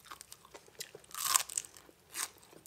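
A woman chews crunchy food close to a microphone.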